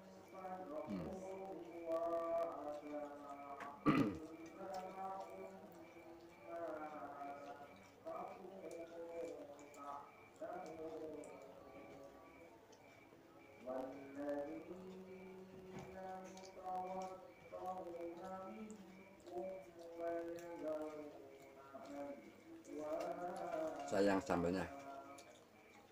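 An older man chews food noisily.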